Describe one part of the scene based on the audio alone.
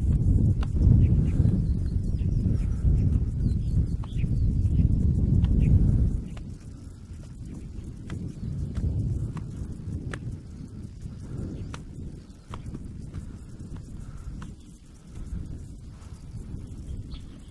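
Tall grass rustles in the wind.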